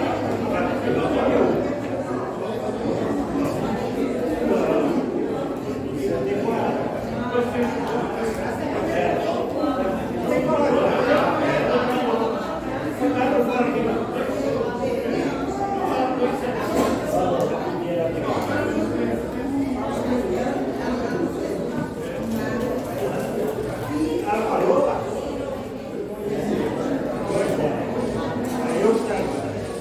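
Playing cards slap and click onto a table.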